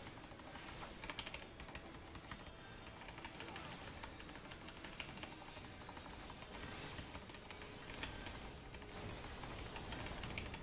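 Game battle effects crackle, whoosh and chime throughout.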